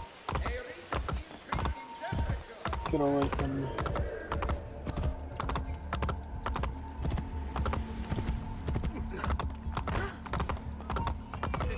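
Horse hooves clop quickly on stone paving.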